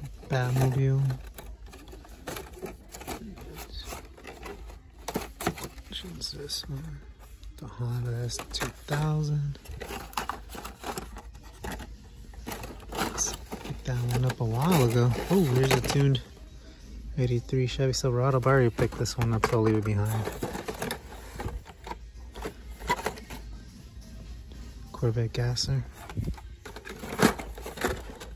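Plastic toy packages rustle and clack as they are handled.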